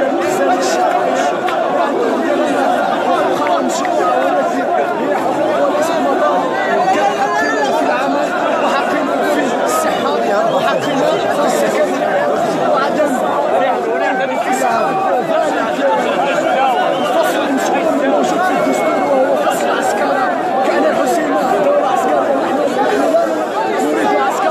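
A young man speaks loudly and with agitation, close up.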